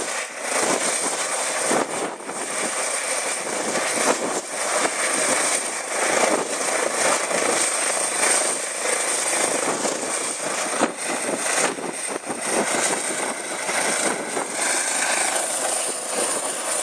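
A helicopter's engine whines loudly and steadily nearby.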